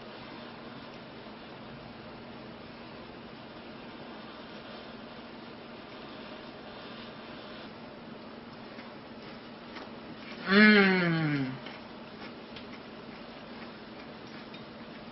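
Chopsticks click against a ceramic bowl.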